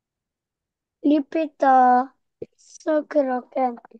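A young girl speaks clearly over an online call.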